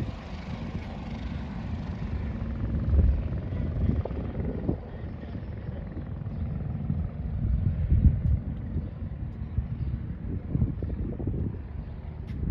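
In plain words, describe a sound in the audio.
A helicopter's rotor thuds in the distance and slowly fades.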